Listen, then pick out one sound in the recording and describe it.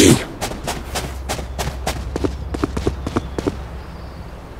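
Quick footsteps tap on stone.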